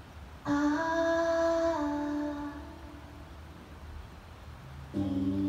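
A woman sings long held notes through a microphone.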